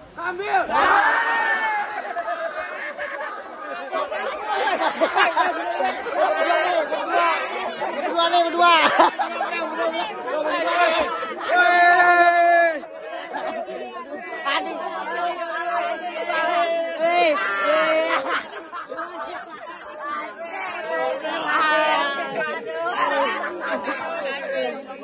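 A crowd of children and adults shouts and cheers excitedly outdoors.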